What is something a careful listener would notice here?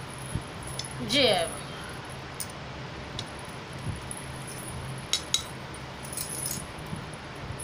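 Glass bangles clink and jingle as a woman moves her arms.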